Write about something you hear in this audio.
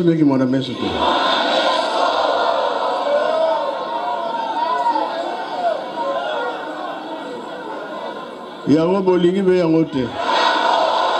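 An elderly man speaks loudly through a microphone.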